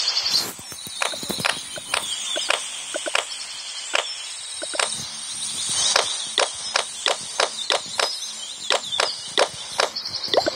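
Short clicks sound again and again.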